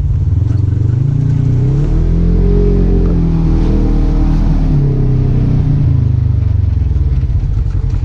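An off-road vehicle's engine roars and revs up and down close by.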